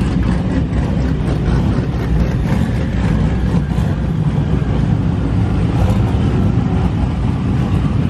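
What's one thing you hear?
A sports car engine revs loudly.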